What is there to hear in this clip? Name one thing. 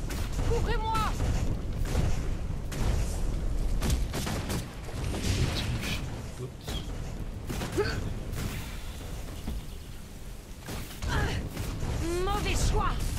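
Game spells and weapon hits crackle and thud in a fast fight.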